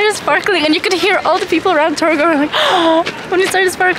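A young woman giggles close by.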